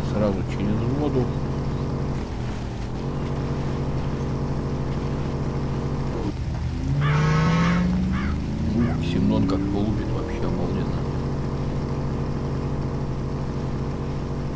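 Water splashes under car tyres.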